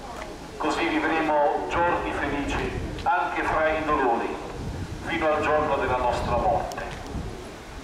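A man speaks loudly and solemnly into a microphone, outdoors.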